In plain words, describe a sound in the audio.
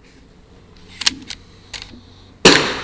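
A rifle's bolt clicks and clacks as it is reloaded.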